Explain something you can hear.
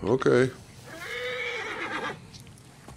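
A camel groans loudly.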